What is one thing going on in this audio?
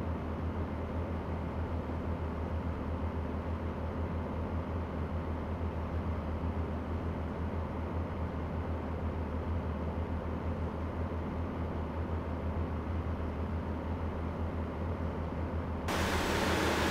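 A truck engine drones steadily, heard from inside the cab.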